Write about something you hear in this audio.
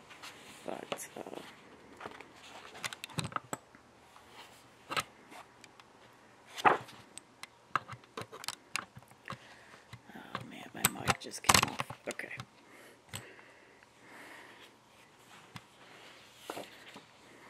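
Book pages rustle and flap as they are turned by hand.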